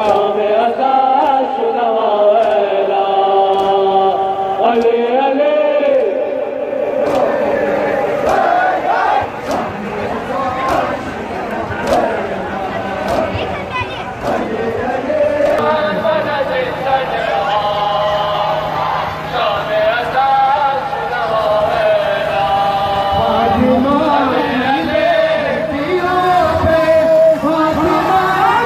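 A crowd of men chants loudly in rhythm.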